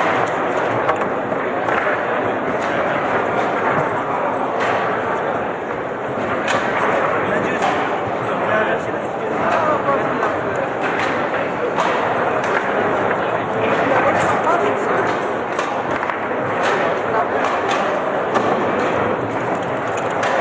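Metal rods rattle and thud as they are spun and slammed.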